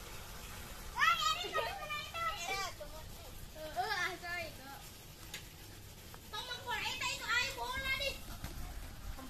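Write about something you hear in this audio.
Young children shout and call out to each other outdoors.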